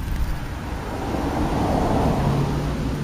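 A starling's wings flap loudly close by as it flies off.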